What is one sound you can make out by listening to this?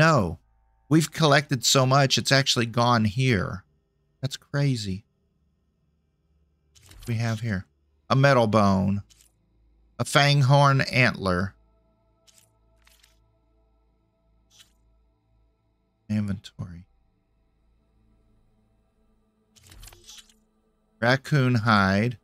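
An elderly man talks calmly into a microphone, in short bursts with pauses.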